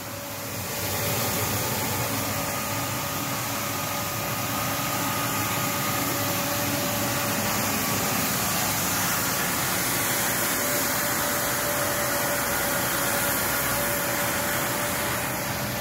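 A floor scrubber's brushes scrub wetly over a concrete floor.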